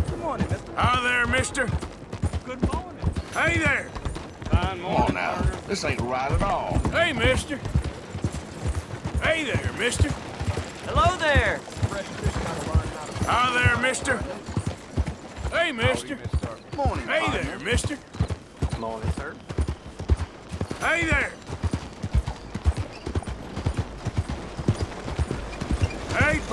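A horse's hooves thud steadily on a dirt road.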